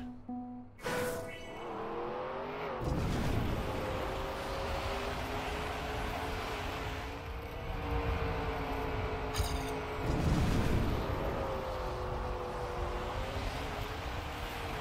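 A racing car engine hums steadily and shifts in pitch.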